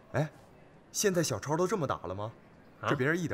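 A young man asks a question with surprise, close by.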